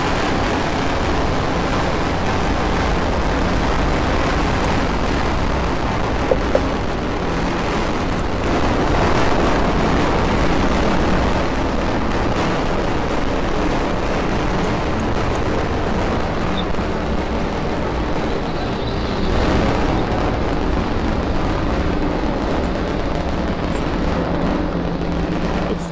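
A rocket roars and rumbles steadily in the distance.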